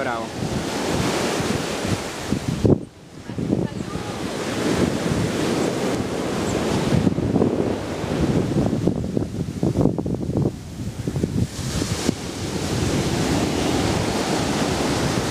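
Waves wash up onto a sandy shore.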